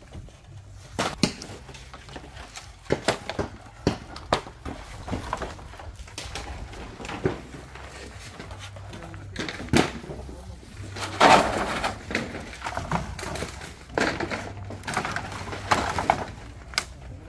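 Wooden boards clatter and knock as they are loaded onto a truck bed.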